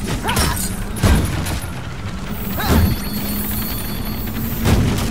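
Crystals shatter with sharp, ringing crashes.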